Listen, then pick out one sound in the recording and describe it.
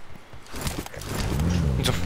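A car engine starts up and revs.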